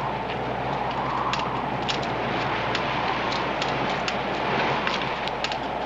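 Several people's footsteps crunch on stony ground.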